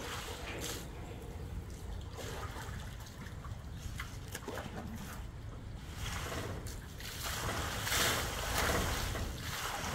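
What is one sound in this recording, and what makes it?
Water splashes and sloshes in a tub.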